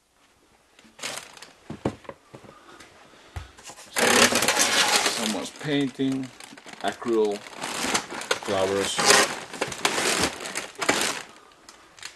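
A plastic bag rustles and crinkles loudly close by.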